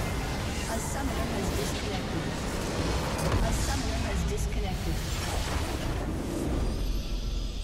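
Game spell effects crash and explode in a busy fight.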